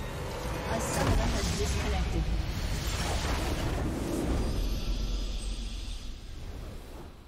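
A magical blast booms with a rushing roar.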